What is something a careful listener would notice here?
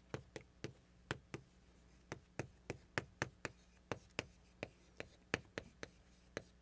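Chalk taps and scrapes sharply on a board in quick bursts.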